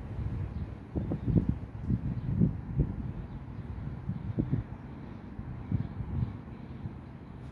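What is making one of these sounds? Wind gusts outdoors in low, rumbling bursts.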